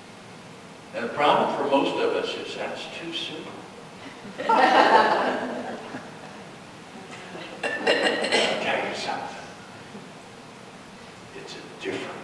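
A man speaks calmly to an audience in a room with some echo.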